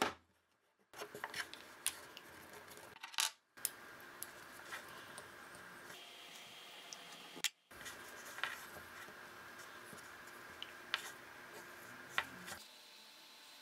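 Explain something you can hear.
A metal bolt clicks and scrapes as it is turned with a hex key.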